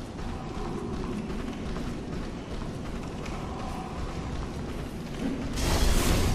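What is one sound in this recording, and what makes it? Heavy armoured footsteps thud on wooden stairs.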